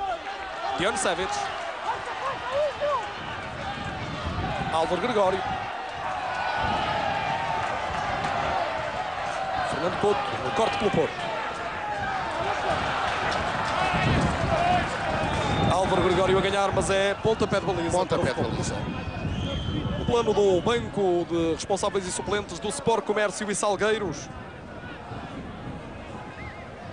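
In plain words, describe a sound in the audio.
A large crowd cheers and roars in a stadium.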